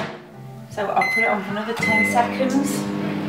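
A microwave keypad beeps.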